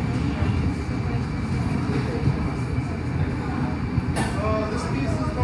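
A furnace roars steadily close by.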